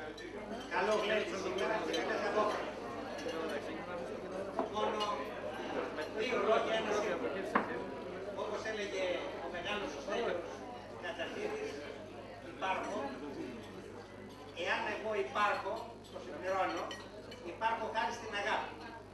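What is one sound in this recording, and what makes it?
A middle-aged man speaks with animation through a microphone and loudspeakers.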